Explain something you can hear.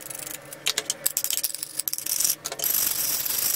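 A plastic scraper scrapes grime off a metal plate.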